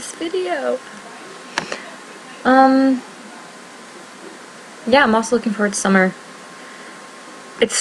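A young woman speaks animatedly and close to a microphone, in short bursts.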